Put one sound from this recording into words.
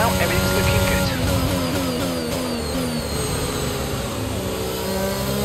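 A racing car engine drops sharply in pitch through quick downshifts while braking.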